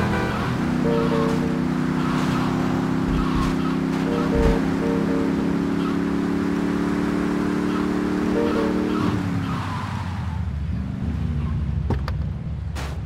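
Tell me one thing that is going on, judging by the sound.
A car engine hums steadily and then winds down.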